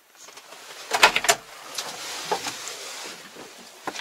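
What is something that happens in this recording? A tractor cab door clicks open.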